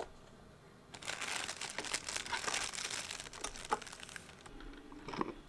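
Paper packets rustle and tear.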